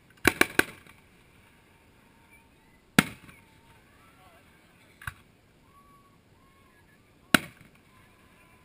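Fireworks burst with loud, sharp bangs that echo away.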